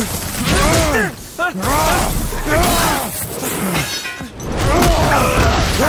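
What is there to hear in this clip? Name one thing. Heavy blows thud and crash close by.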